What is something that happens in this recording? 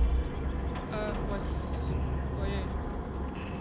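A young woman speaks quietly into a nearby microphone.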